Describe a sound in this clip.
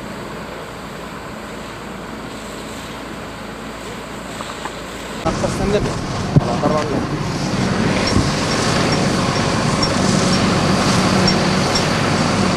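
A diesel truck engine rumbles at low speed.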